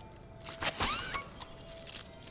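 A bright jingle of chimes rings out as a gift bursts open.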